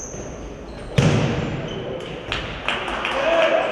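A ball thuds on a hard floor in a large echoing hall.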